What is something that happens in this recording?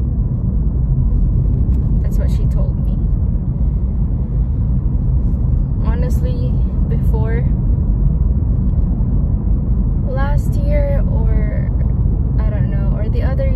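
A car engine and tyres rumble steadily on the road.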